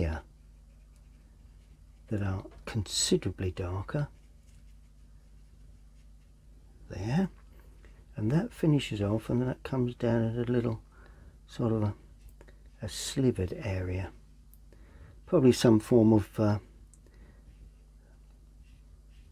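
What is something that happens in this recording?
A paintbrush softly dabs and strokes on paper.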